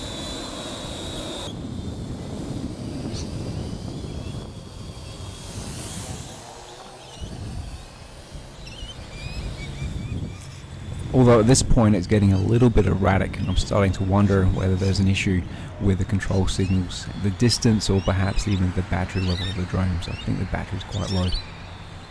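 A small drone buzzes overhead in the distance.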